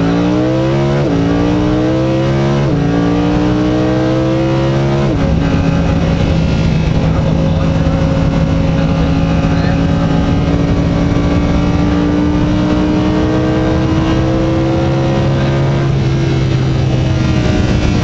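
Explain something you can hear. A sports car engine roars loudly, rising in pitch as it accelerates and dropping sharply at each gear change.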